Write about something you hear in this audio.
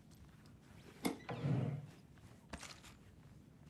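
A drawer slides open with a wooden thud.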